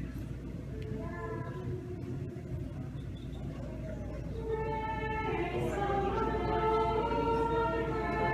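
A man sings a slow chant.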